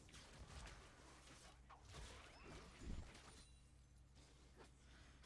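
Game spell effects whoosh and crackle in quick bursts during a fight.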